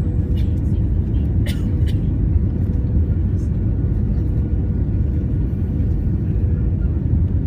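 A jet engine roars steadily as an airliner speeds along a runway.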